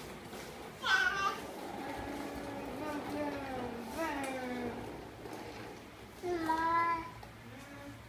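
A toddler squeals and babbles nearby.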